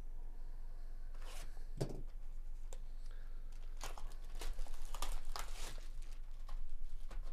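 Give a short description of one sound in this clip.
Plastic wrapping crinkles and tears.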